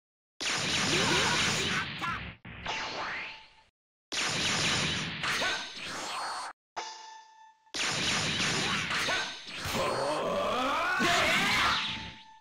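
Punches and kicks thud in quick bursts.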